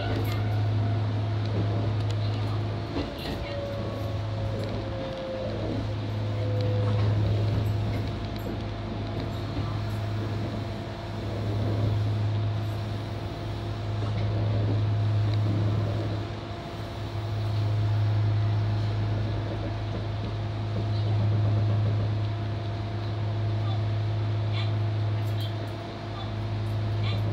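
A train's motor hums steadily, swelling and easing as it rolls along.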